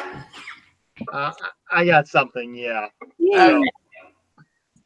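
A middle-aged man speaks over an online call.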